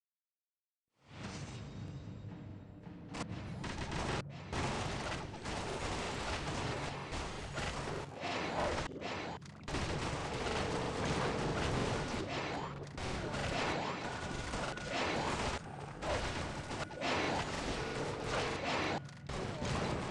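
Gunfire and explosions from a video game battle boom and crackle rapidly.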